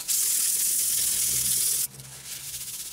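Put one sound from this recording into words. Fingers rub and scrape against a metal helmet.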